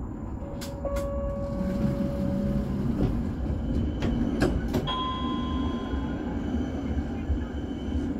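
Another tram rolls past close by.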